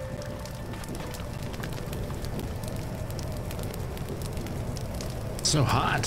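Fire crackles and roars steadily.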